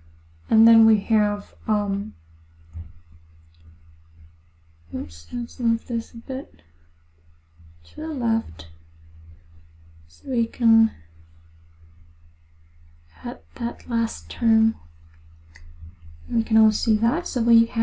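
A young woman speaks calmly into a close microphone, explaining in short phrases.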